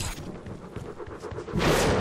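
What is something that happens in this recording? A video game weapon fires an icy, hissing blast.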